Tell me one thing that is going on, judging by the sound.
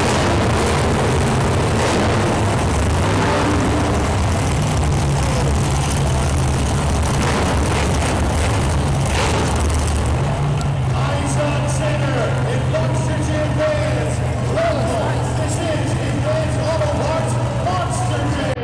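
Monster truck engines roar loudly in a large echoing arena.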